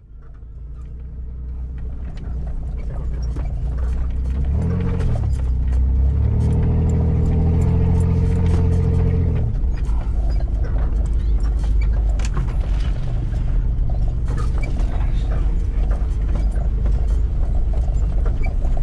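A car engine rumbles steadily from inside the cabin.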